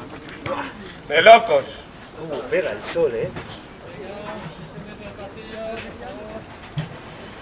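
Young men shout and call to each other outdoors at a distance.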